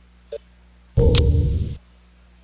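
A short, loud explosion booms.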